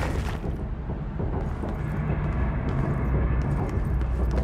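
Footsteps tap on a hard floor.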